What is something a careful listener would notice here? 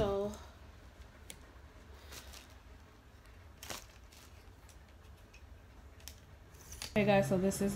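A metal tripod clicks and rattles as it is adjusted.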